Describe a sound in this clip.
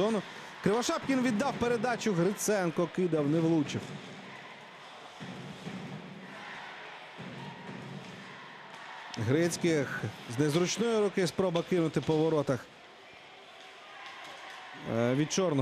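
Hockey sticks clack against a puck and the boards.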